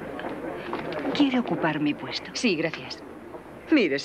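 A woman speaks calmly and clearly.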